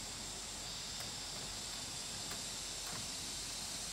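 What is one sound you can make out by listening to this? A nail gun fires with short sharp snaps into bamboo.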